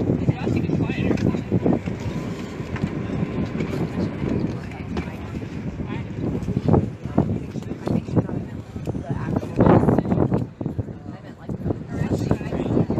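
A crowd of young people chatter nearby.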